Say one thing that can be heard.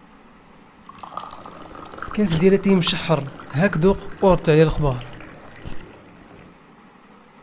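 Tea pours into a glass with a steady splashing trickle.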